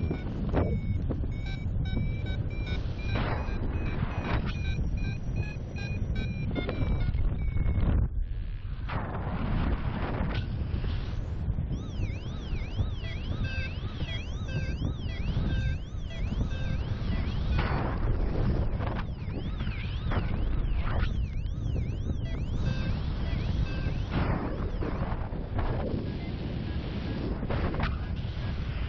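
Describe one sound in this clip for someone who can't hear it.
Strong wind rushes and buffets loudly, outdoors high in the air.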